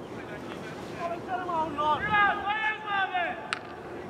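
Young men shout to each other outdoors at a distance.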